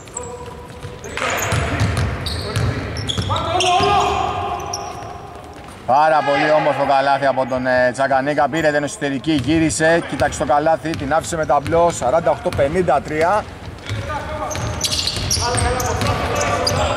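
Basketball shoes squeak on a hardwood court in a large echoing arena.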